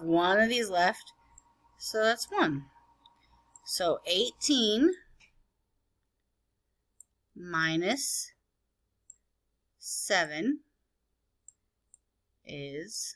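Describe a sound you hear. A woman speaks calmly and slowly through a microphone, explaining in short phrases with pauses.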